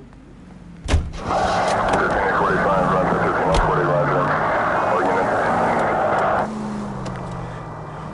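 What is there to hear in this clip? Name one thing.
A car engine starts and revs as the car pulls away.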